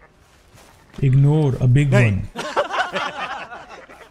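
A young man speaks animatedly into a microphone, close by.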